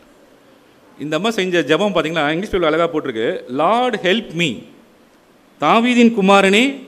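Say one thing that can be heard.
A man sings loudly through a loudspeaker in an echoing hall.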